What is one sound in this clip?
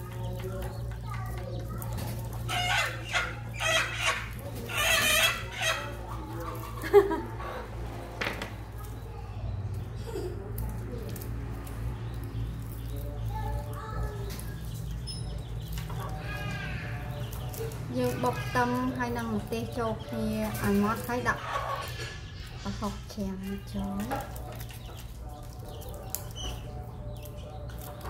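A small knife peels papery shallot and garlic skins.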